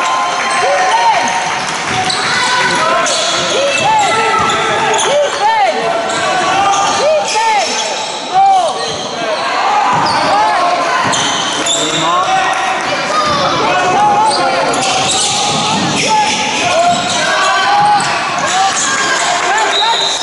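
Sneakers squeak sharply on a hard court, over and over, in a large echoing hall.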